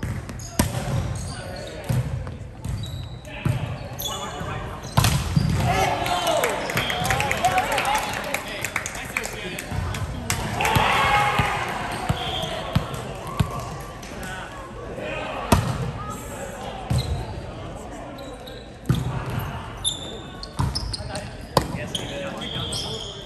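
Shoes squeak on a hardwood floor.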